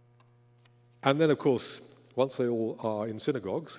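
An elderly man speaks calmly through a microphone in an echoing hall.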